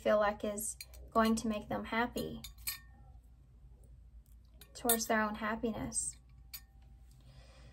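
Small metal charms rattle and clink in a dish as it is shaken.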